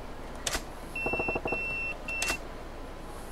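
A pager beeps in steady high tones.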